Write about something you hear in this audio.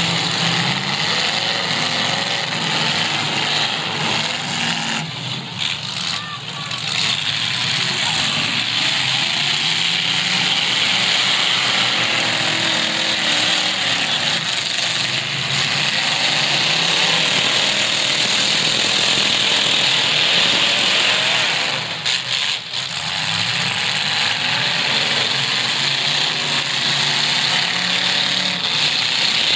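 A large crowd cheers and shouts throughout.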